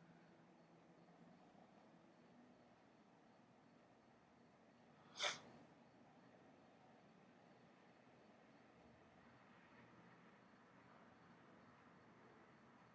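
A cat meows faintly through a window.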